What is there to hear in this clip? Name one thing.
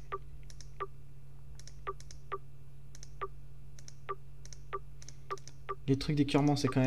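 Short electronic menu clicks tick repeatedly at an uneven pace.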